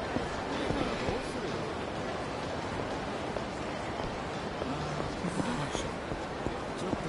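Footsteps tap quickly on pavement.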